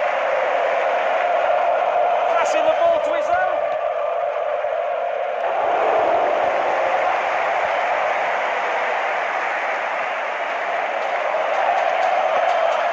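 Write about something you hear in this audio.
A large crowd cheers and roars steadily in a stadium.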